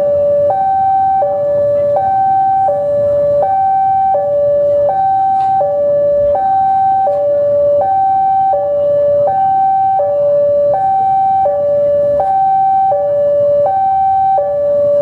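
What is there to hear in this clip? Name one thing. A diesel locomotive engine rumbles as a train rolls slowly in.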